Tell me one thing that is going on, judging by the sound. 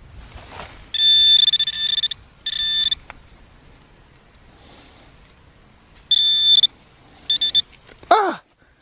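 A handheld metal detector beeps in short, steady high tones.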